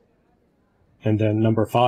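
An elderly man speaks with animation through an online call.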